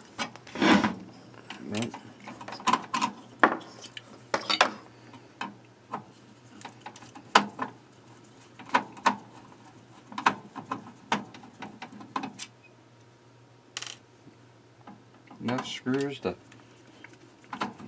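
A screwdriver taps and scrapes against metal.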